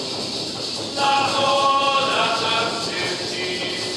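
A group of adults sings a chant together.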